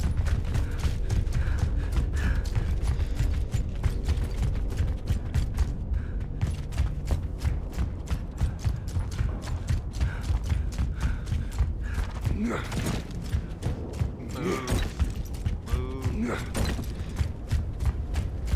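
Heavy footsteps thud in a quick, steady rhythm.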